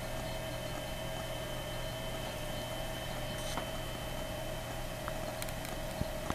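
An old computer monitor hums with a steady, faint whine.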